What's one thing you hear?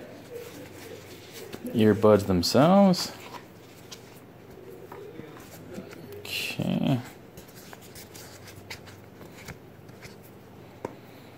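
Cardboard packaging rustles and clicks as hands handle it.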